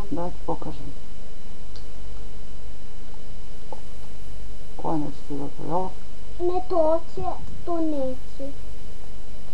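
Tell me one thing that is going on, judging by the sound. A young woman speaks briefly and softly close by.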